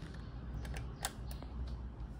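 A wall switch clicks.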